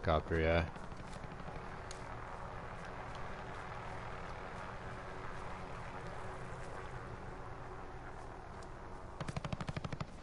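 A helicopter drones overhead with a steady rotor hum.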